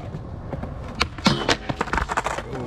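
A skateboard clacks and scrapes on a metal rail.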